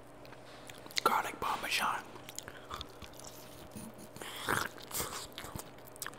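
A man bites into crispy fried food close to a microphone.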